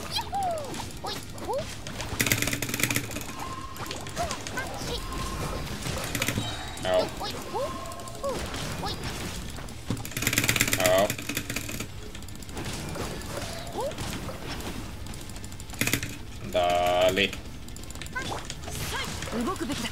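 Game weapon strikes and magic blasts crash and whoosh in quick bursts.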